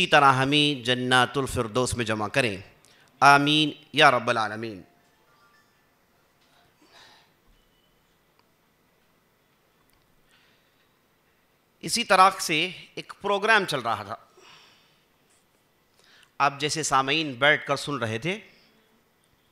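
A man speaks with emphasis into a microphone, heard over a loudspeaker, with pauses between phrases.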